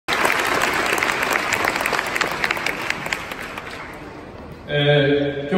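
A large crowd claps and cheers in an open stadium.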